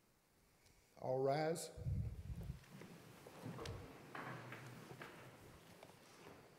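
An elderly man speaks calmly into a microphone in an echoing room.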